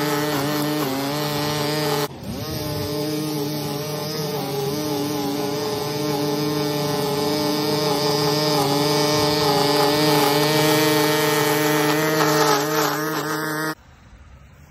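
A string trimmer engine whines loudly and steadily.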